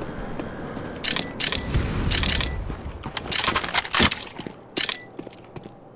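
Guns clack and rattle as they are picked up and swapped.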